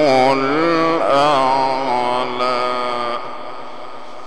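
A middle-aged man chants in a long, wavering melodic voice through a microphone and loudspeaker, then stops as the sound echoes away.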